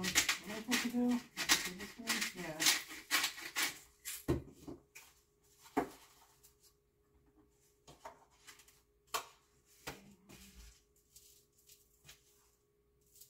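Dishes and utensils clink and knock on a counter.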